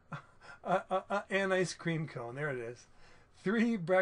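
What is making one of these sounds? A middle-aged man laughs.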